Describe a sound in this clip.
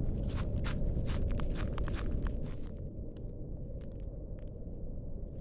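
Leafy bushes rustle and swish.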